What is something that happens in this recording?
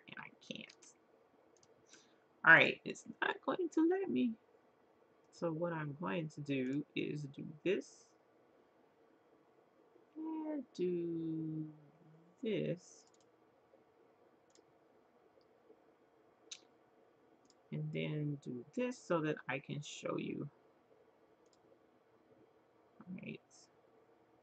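A woman speaks calmly and close to a microphone, pausing now and then.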